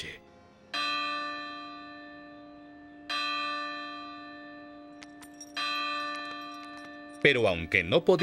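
A clock bell chimes loudly, each stroke ringing out and slowly fading.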